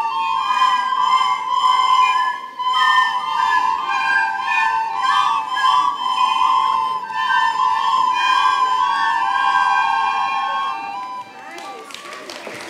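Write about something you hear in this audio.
A children's choir sings in a large echoing hall.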